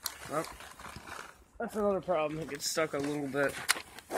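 Boots crunch on snow close by.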